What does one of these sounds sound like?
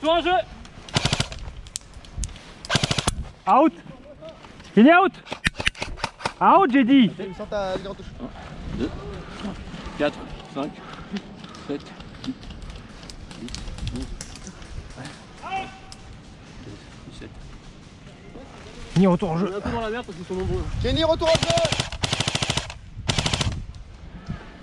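Gunshots crack loudly outdoors.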